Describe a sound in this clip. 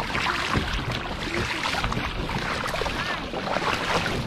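A paddle splashes in water.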